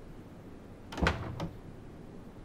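A door opens with a click.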